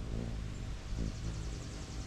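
A hummingbird's wings hum briefly up close.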